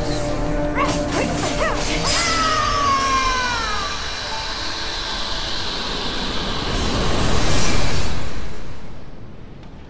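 Magic blasts whoosh and shimmer with bright chiming tones.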